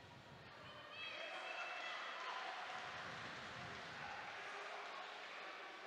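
A woman referee calls out to the boxers.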